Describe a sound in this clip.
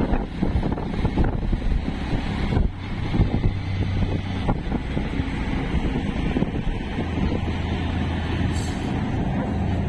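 Wind buffets past an open vehicle.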